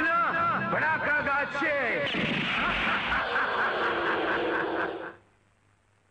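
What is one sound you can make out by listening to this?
A man calls out loudly.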